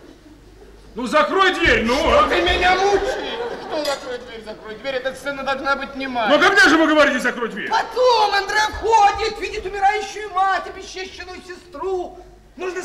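A second man declaims loudly and emotionally on a stage.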